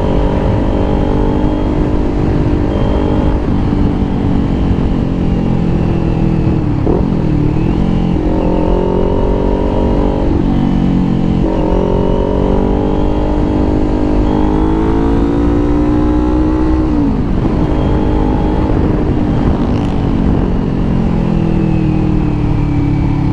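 A motorcycle engine hums and changes pitch as it speeds up and slows down.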